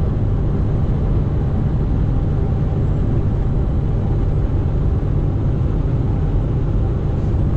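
Tyres roar on the highway.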